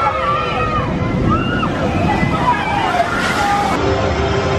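A large wave of water splashes and sprays loudly.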